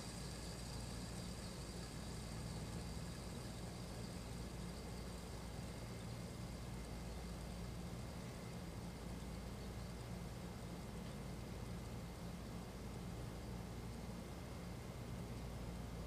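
A fidget spinner whirs steadily as it spins.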